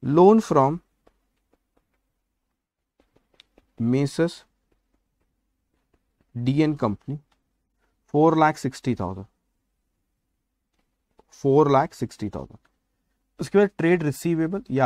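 A man speaks calmly in short phrases, close to a microphone, with pauses between them.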